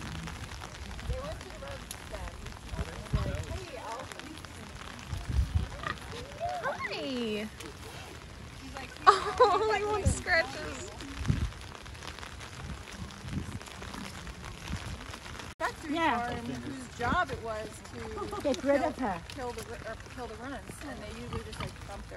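A woman talks softly nearby.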